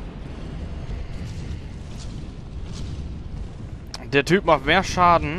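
A heavy weapon whooshes through the air.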